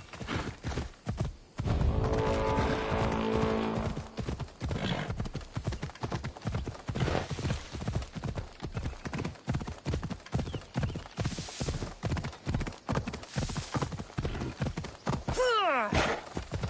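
Horse hooves pound rhythmically on the ground at a gallop.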